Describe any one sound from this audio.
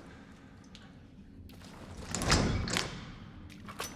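A heavy metal door scrapes open.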